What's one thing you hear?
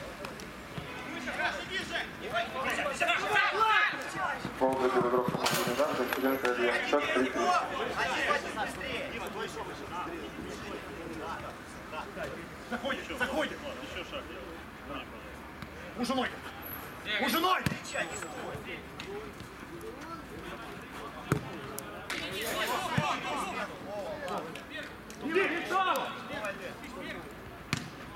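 Men shout to each other outdoors.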